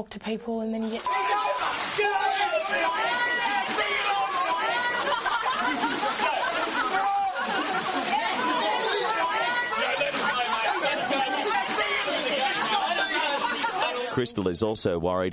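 A crowd of young men and women shouts and screams excitedly.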